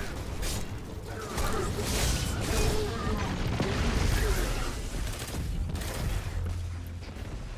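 Energy weapons fire in rapid, crackling bursts.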